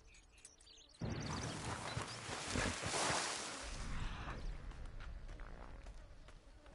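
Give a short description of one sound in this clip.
A horse wades and splashes through shallow water.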